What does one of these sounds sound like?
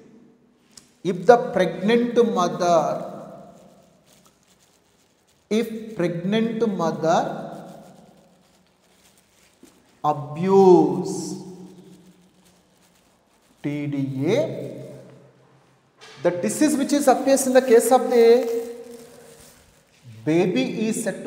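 A man lectures loudly in bursts, with echo in a bare room.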